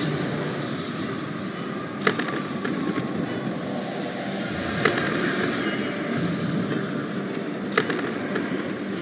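Wind rushes steadily past a flying ship.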